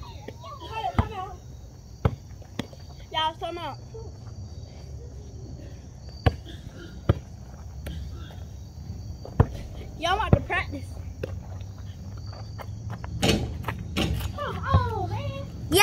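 A basketball bounces on the ground.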